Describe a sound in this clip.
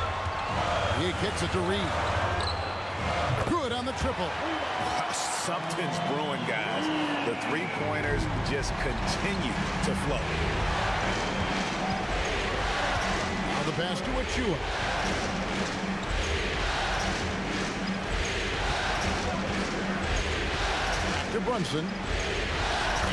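Basketball shoes squeak sharply on a wooden court.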